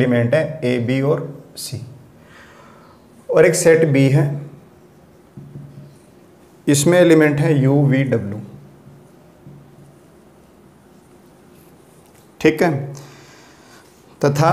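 A man speaks calmly and clearly, close by, in short bursts with pauses.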